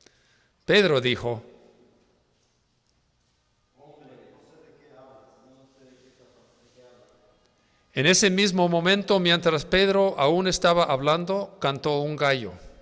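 A woman reads aloud through a microphone in an echoing room.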